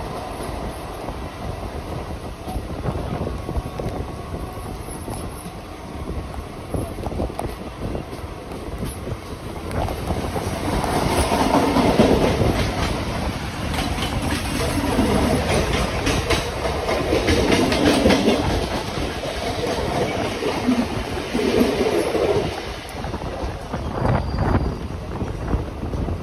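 A train rumbles along the tracks, its wheels clattering steadily.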